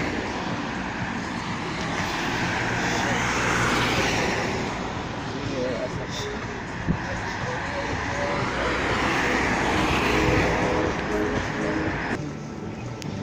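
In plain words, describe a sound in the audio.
Cars drive past on a street, swelling and fading as each goes by.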